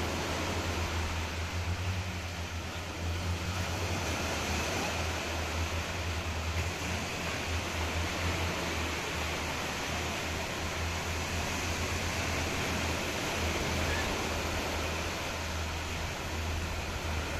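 Small waves wash gently onto a sandy shore.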